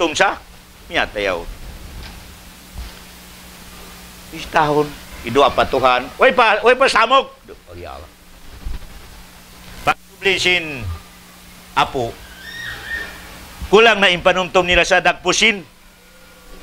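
A middle-aged man speaks with animation, in bursts with pauses.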